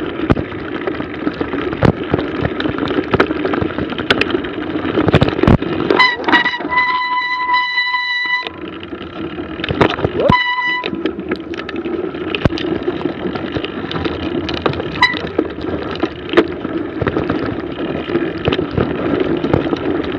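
A bicycle rattles and clatters over bumpy ground.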